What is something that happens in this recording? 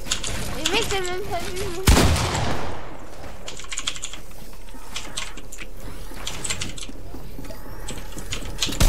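Keyboard keys clack quickly and repeatedly, close by.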